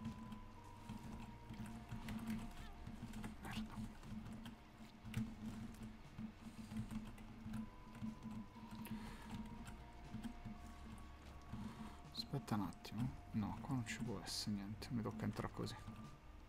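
Short squelching splats burst now and then.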